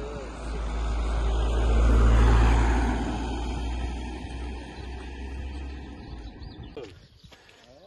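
A car drives past close by on a road and fades into the distance.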